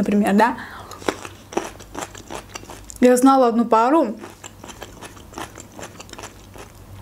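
A young woman chews food close to a microphone with soft, wet mouth sounds.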